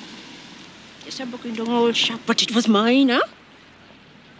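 An elderly woman speaks hoarsely and with strain, close by.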